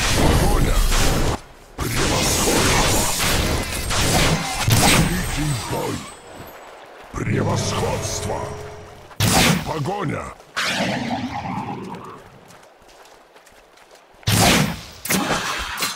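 Magic spells whoosh and burst in quick flashes.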